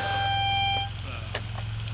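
A reed organ plays a held chord.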